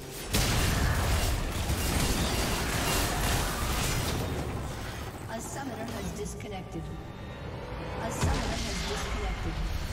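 Spell effects crackle and explode during a game fight.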